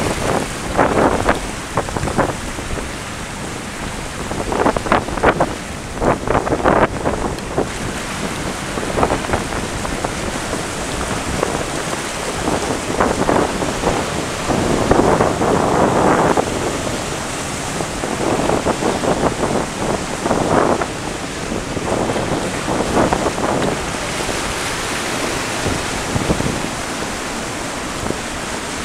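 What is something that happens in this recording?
Strong wind blows and buffets outdoors.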